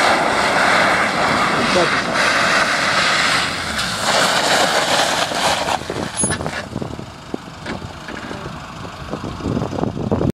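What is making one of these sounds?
An SUV engine drives closer and slows down.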